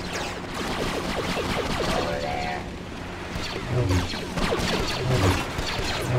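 A lightsaber hums and swings.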